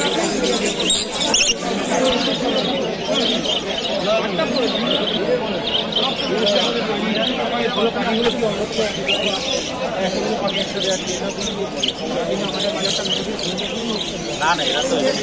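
Many caged parrots chirp and screech.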